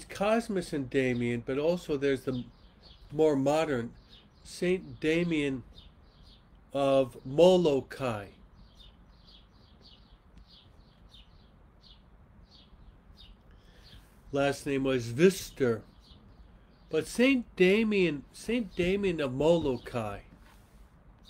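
A middle-aged man speaks calmly and earnestly into a nearby microphone, with pauses.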